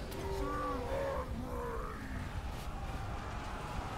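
A magical blast crackles and bursts.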